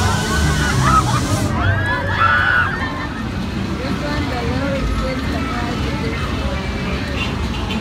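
A crowd chatters and calls out nearby outdoors.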